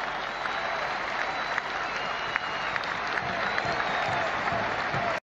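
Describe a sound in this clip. Whistles shrill from a large crowd.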